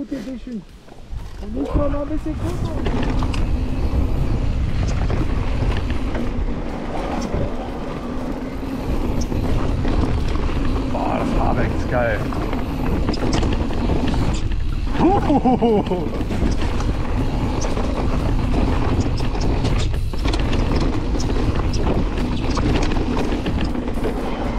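Wind buffets the microphone as the bike speeds along.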